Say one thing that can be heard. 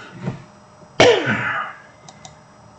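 A man coughs into his hand.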